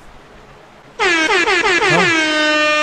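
A young man shouts with a loud, drawn-out cry close to a microphone.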